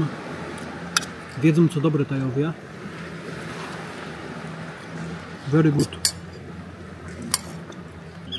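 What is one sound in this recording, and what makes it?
A metal spoon clinks against a metal pot.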